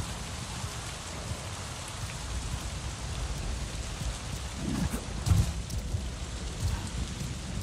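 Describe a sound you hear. A game character climbs up a huge tree trunk with scraping grips.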